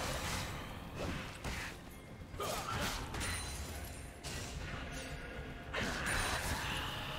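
Magic spells and weapon hits crackle and clash in a busy game fight.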